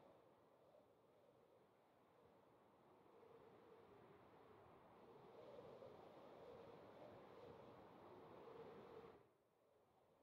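Wind rushes past during a fast glide through the air.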